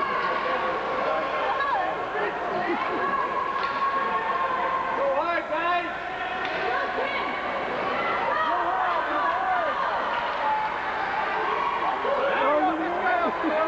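Young children shout and call out in a large echoing hall.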